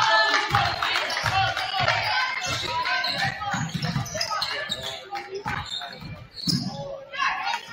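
A crowd murmurs and calls out in the stands.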